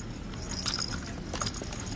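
A hand handles a plastic toy.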